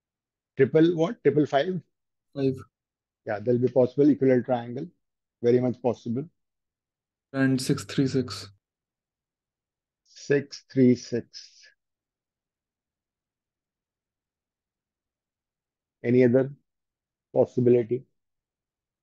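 A middle-aged man speaks calmly through a close microphone, explaining in short bursts.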